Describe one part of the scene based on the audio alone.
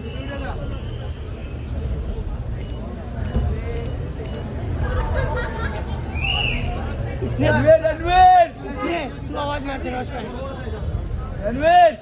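A crowd of adults chatters.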